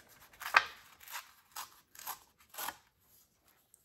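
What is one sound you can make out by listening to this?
Paper rips and rustles as hands tear it.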